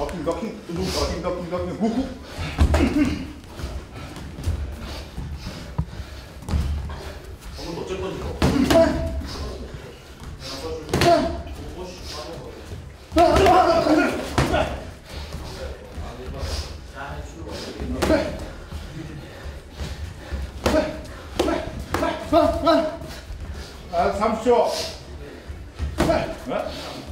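Boxing gloves thud against gloves and headgear in quick bursts.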